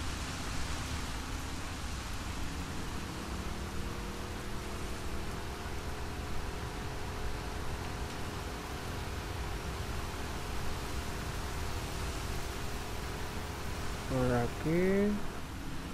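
Water splashes and rushes against a boat's hull.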